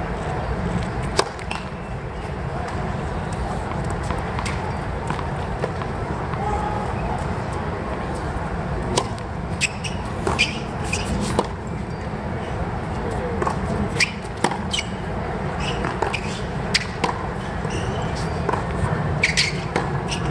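A tennis racquet strikes a ball.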